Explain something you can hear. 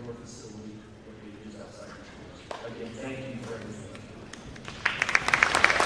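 A man speaks into a microphone over a loudspeaker in a large echoing hall.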